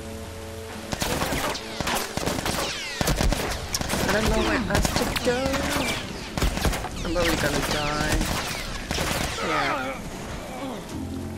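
Gunshots crack in rapid bursts nearby.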